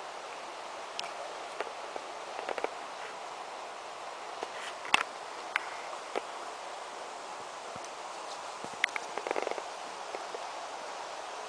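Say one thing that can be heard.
A dog toy rattles as it is shaken.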